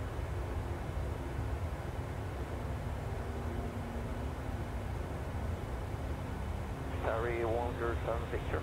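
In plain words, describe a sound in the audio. A jet engine drones steadily in a low rumble.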